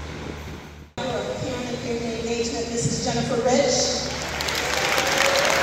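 A young woman sings into a microphone, heard through loudspeakers in an echoing hall.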